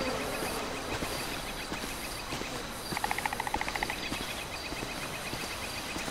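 Footsteps crunch on dry grass and dirt.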